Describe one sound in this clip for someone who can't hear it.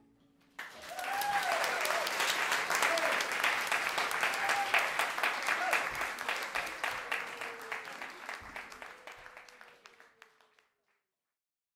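An audience applauds and cheers in a room, then the clapping fades away.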